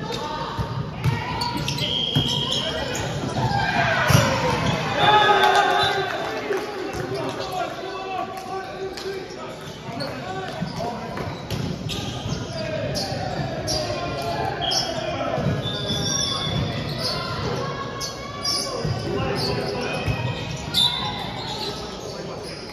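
Shoes squeak on a hard floor.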